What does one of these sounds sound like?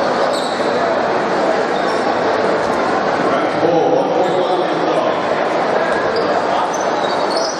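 A large crowd murmurs and chatters in an echoing indoor hall.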